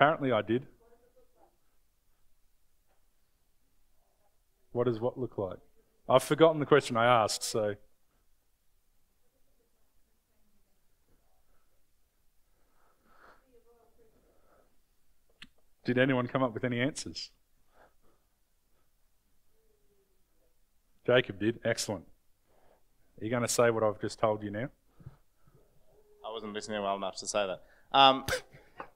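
A young man speaks calmly in short bursts with long pauses.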